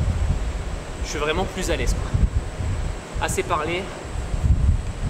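A young man talks with animation, close by.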